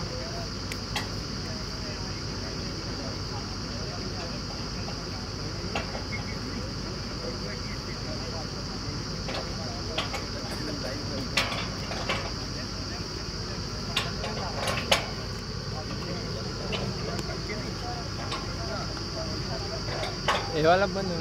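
Metal clanks sharply now and then.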